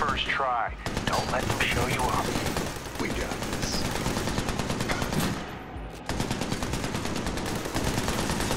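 Machine guns fire in rapid, continuous bursts.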